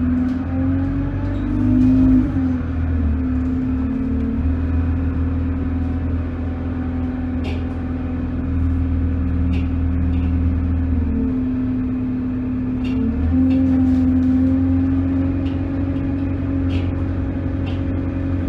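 Loose fittings rattle and click inside a moving bus.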